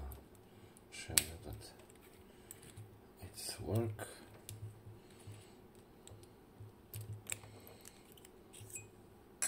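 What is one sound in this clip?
A metal key slides in and out of a lock with small clicks.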